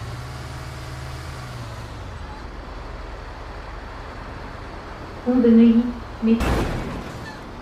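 A heavy vehicle's engine rumbles steadily.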